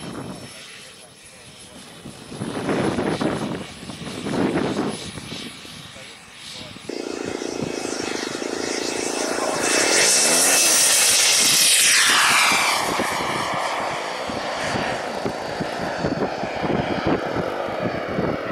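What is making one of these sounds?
A model jet's turbine whines loudly, rising to a roar and fading as it flies away.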